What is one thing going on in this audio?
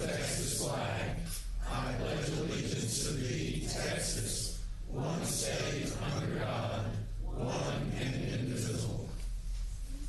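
A group of men and women recite a pledge together in unison.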